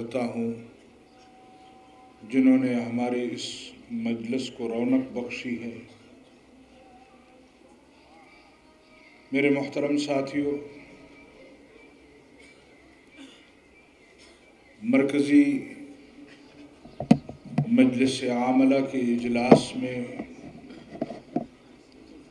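An elderly man speaks forcefully into a microphone, his voice carried over loudspeakers with pauses between phrases.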